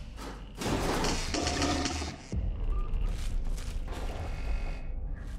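Electronic game effects buzz and whoosh.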